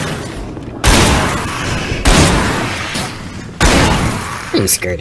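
A shotgun fires three loud blasts.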